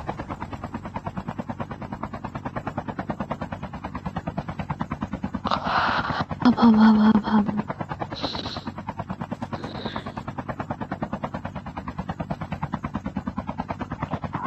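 A helicopter's rotor blades thump rapidly and steadily throughout.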